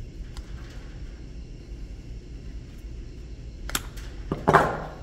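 Metal pliers click and scrape against a bearing.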